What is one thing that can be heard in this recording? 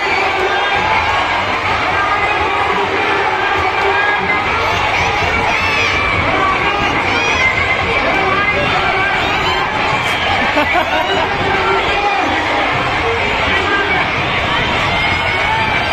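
Young men and boys nearby shout with excitement.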